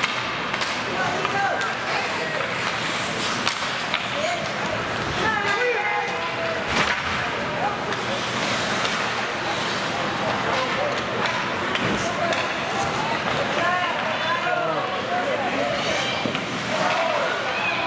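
Spectators call out and chatter in the stands.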